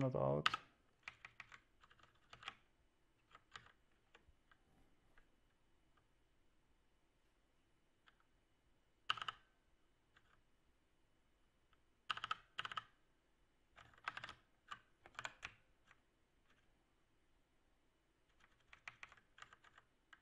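Computer keys click in short bursts.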